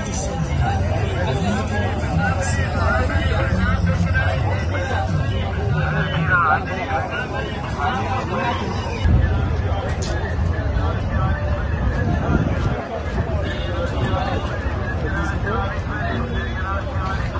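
A crowd of men talks and murmurs loudly outdoors.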